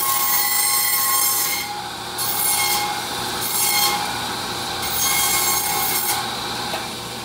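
A band saw rasps through meat and bone in loud bursts.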